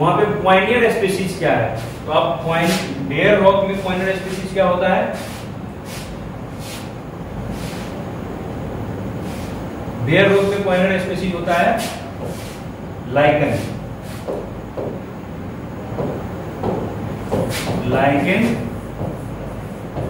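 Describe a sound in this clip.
A young man lectures calmly and clearly through a close microphone, with pauses.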